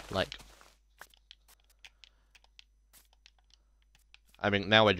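Footsteps patter softly over grass.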